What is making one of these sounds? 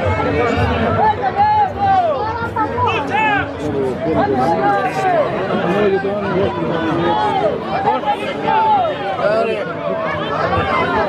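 A crowd of men and women chatter and call out all at once outdoors.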